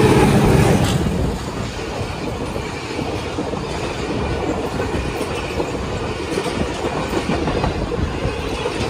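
Passenger coaches clatter over the rails.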